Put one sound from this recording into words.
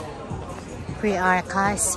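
A woman speaks loudly close by.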